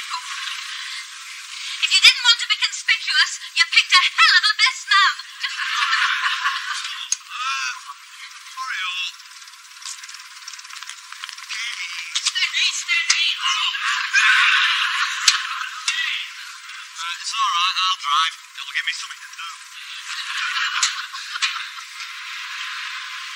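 A middle-aged woman talks with animation, close by, with a thin, tinny sound.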